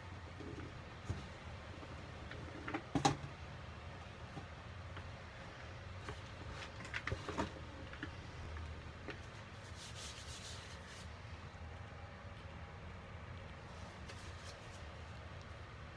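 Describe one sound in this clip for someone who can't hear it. Gloved hands rake through loose powder in a bowl.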